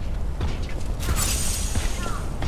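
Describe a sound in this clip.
Electricity crackles and sizzles in a sudden burst.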